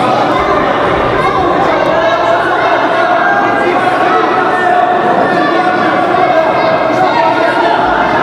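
A crowd of spectators chatters and shouts in an echoing hall.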